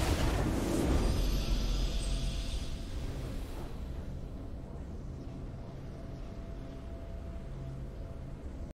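A triumphant game victory tune plays.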